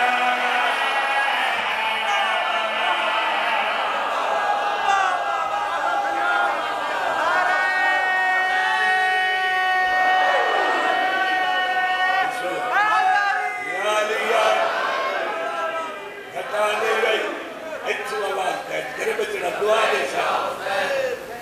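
A large crowd of men chants together.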